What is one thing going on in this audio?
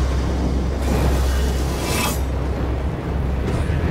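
A large fan hums steadily.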